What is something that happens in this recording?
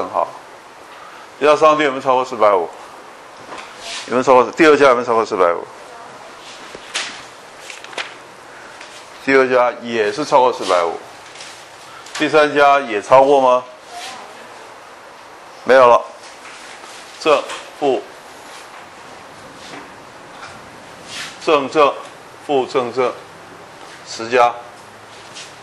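An elderly man speaks calmly into a microphone in bursts, with pauses between phrases.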